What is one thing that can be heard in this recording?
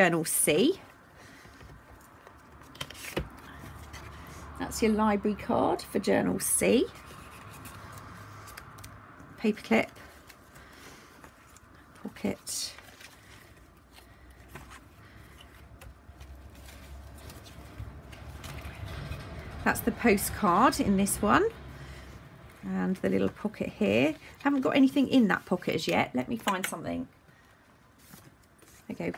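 Paper pages rustle and flip close by.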